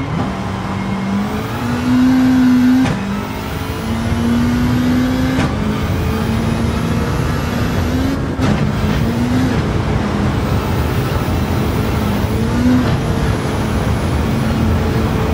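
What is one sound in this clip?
Tyres crunch and rumble over a gravel road.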